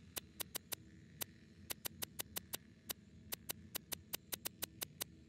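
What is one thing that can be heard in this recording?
Short menu clicks tick quickly as a selection moves through a list.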